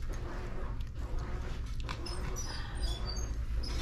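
Scissors snip through fur.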